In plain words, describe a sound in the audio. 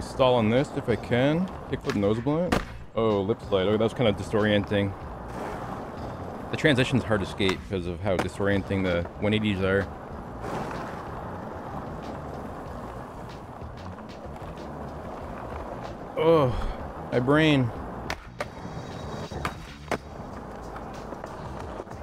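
Skateboard wheels roll over rough concrete.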